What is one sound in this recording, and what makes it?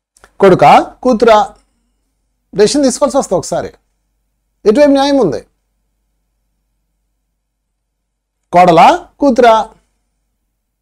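A man speaks with animation close to a microphone, in short bursts with pauses.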